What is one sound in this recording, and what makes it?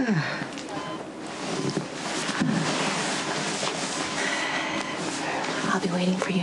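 A young woman speaks gently up close.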